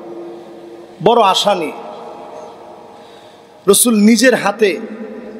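A man preaches with animation into a microphone, heard through loudspeakers in a reverberant space.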